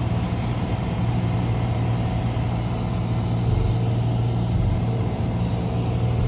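Wind rushes past the plane.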